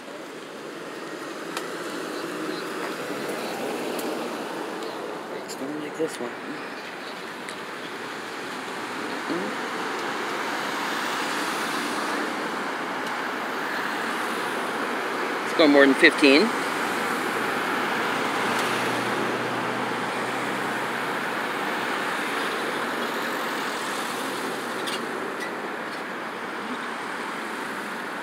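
Cars drive steadily past close by outdoors.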